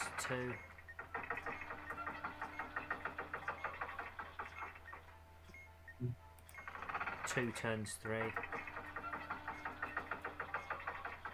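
A turning dial ticks rapidly.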